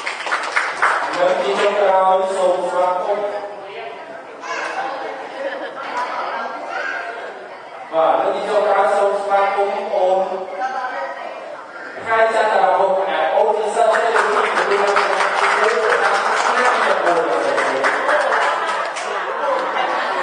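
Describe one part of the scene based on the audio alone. A man speaks into a microphone, his voice carried through loudspeakers in an echoing hall.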